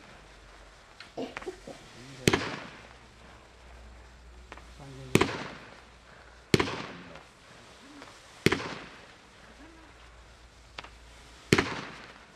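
Fireworks burst with loud bangs that echo away, one after another.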